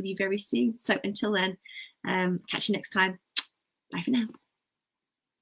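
A woman speaks warmly and with animation over an online call.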